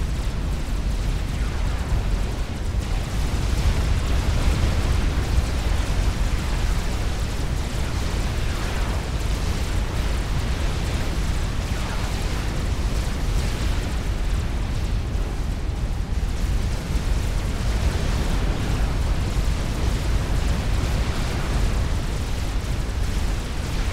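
Game explosions rumble and boom continuously.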